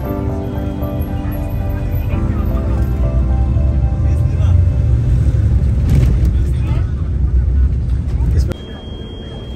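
Traffic rumbles loudly outside a moving bus.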